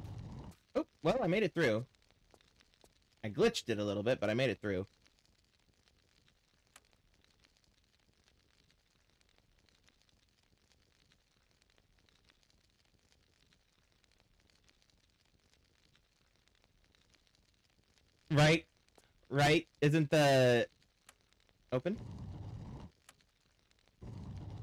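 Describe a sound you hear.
A young man talks into a microphone close up, in bursts with long pauses.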